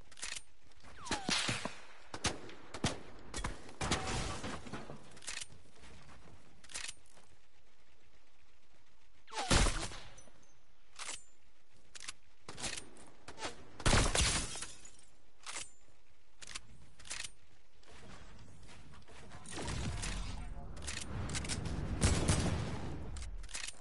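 Gunshots from a game crack in short bursts.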